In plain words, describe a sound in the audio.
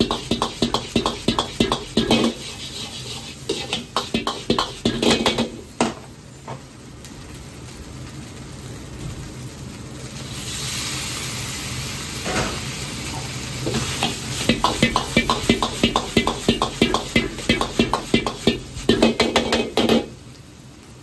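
A metal spatula scrapes and clatters rapidly against a wok.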